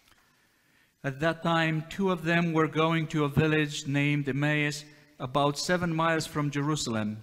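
A woman chants a hymn in a clear voice, echoing in a large hall.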